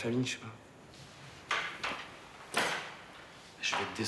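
Clothes rustle as a man handles a jacket.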